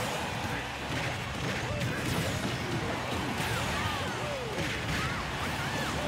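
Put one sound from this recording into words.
An arena crowd cheers steadily.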